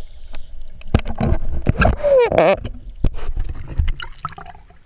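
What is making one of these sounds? Water splashes and sloshes as a swimmer surfaces.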